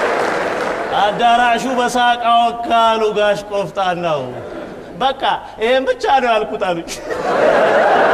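A man laughs loudly and heartily.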